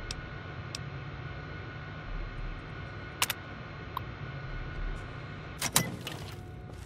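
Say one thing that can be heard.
A computer terminal clicks and beeps as keys are pressed.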